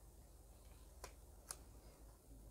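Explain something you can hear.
Playing cards tap and slide softly on a table.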